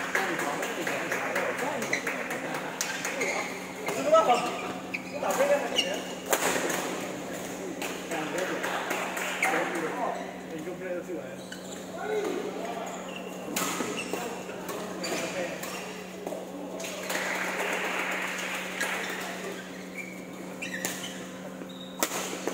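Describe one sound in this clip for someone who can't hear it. Rackets hit a shuttlecock with sharp pops in a large echoing hall.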